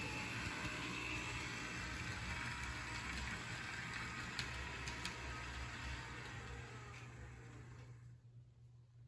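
A toy train rattles and whirs along its track.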